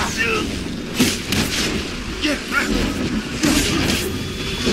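An energy blast bursts with a loud crackle.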